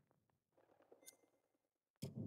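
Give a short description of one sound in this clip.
A short electronic click sounds once.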